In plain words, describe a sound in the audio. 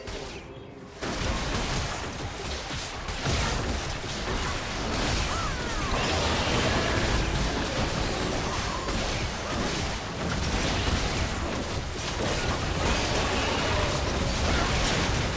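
Game spell effects and attacks crackle and boom during a fight.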